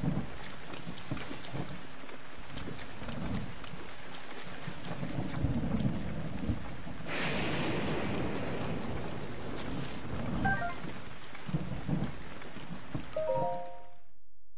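Footsteps rustle through wet grass.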